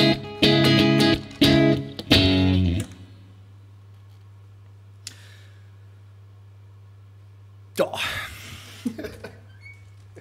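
An electric guitar plays loud distorted chords through an amplifier.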